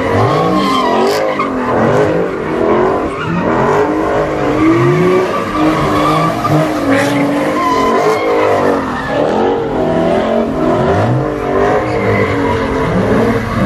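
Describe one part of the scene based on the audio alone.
A car engine revs hard, rising and falling over and over.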